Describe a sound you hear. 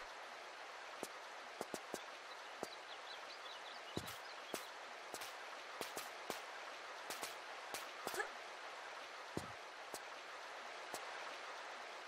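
Footsteps splash and thud quickly.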